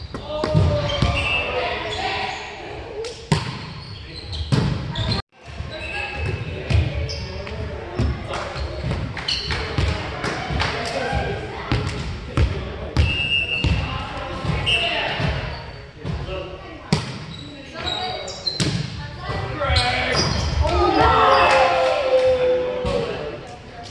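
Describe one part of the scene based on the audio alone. Men talk and call out to each other in a large echoing gym.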